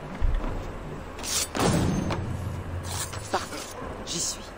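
A blade strikes a person with a sharp hit.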